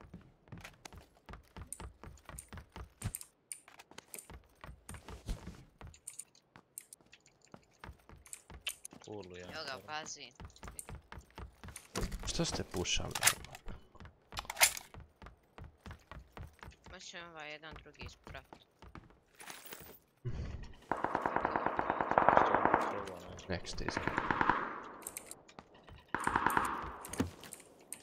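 Footsteps thud on wooden floors.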